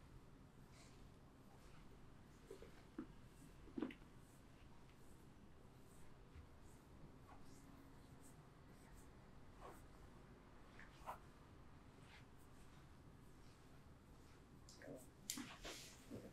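Fingers rub and scratch softly through hair, very close.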